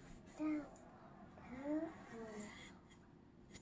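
A young girl speaks softly close by.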